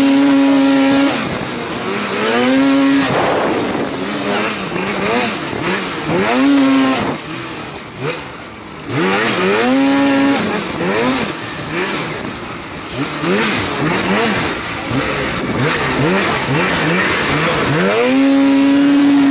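A snowmobile engine revs up and down loudly, close by.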